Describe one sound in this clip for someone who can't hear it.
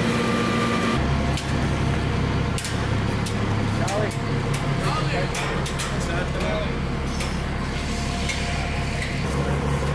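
Boots clang on metal stair treads.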